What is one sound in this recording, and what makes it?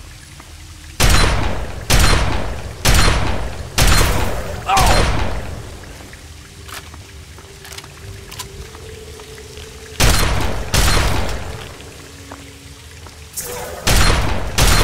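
Gunshots ring out one by one, echoing as if in a cave.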